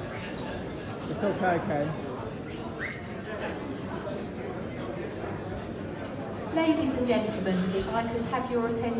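A woman speaks through a microphone over loudspeakers in a large echoing hall.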